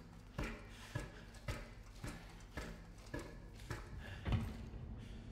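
Footsteps clank steadily on metal ladder rungs.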